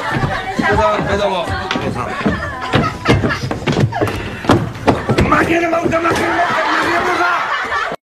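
A man shouts loudly and repeatedly.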